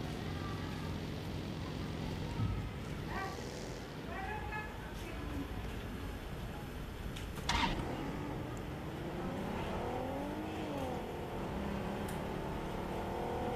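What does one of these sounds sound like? A vehicle engine drones and revs.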